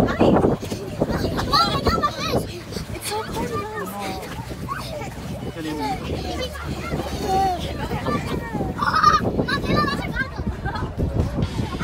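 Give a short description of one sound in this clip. Water splashes as children move through shallow water.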